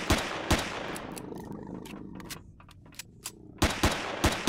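A gun clicks and clatters while being reloaded.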